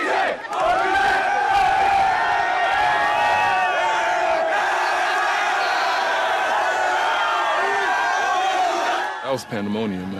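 A large crowd outdoors cheers and chants loudly.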